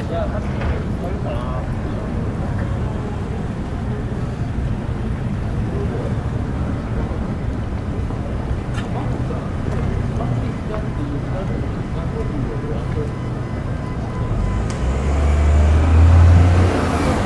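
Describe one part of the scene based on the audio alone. Footsteps walk steadily along a paved street outdoors.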